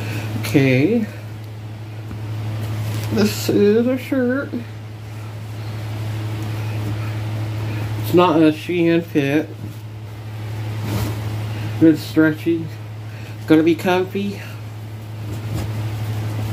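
A soft blanket rustles as it is handled.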